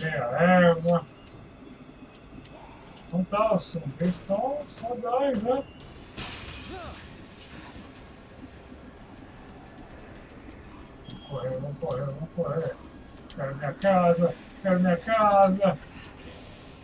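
A middle-aged man talks with animation into a close microphone.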